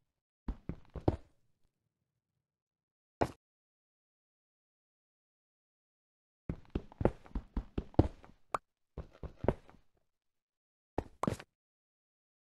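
A pickaxe chips at stone with short crunching knocks.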